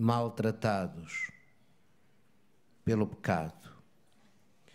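A man speaks slowly through a microphone in an echoing hall.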